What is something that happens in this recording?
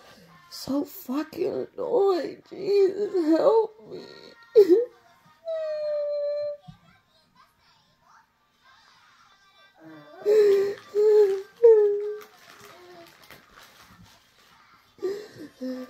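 A man sings in loud, wavering wails close by.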